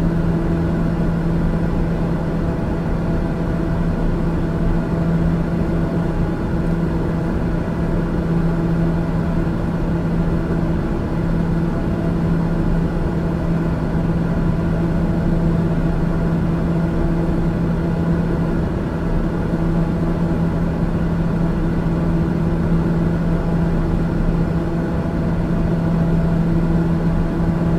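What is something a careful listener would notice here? An aircraft engine drones steadily and loudly inside a small cabin.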